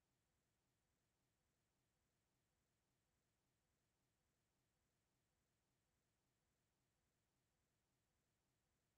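A wall clock ticks steadily and softly.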